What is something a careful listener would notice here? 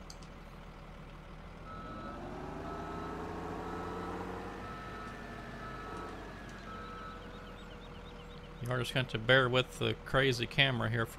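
A diesel loader engine revs up and then settles back down.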